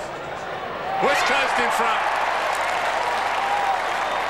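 A large crowd cheers suddenly and loudly.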